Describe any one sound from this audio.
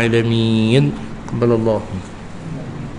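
A middle-aged man chants a prayer into a microphone, heard through a loudspeaker.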